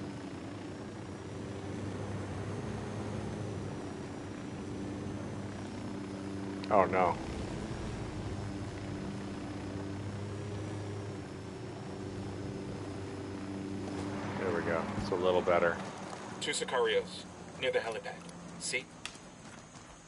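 A helicopter's rotor and engine drone steadily.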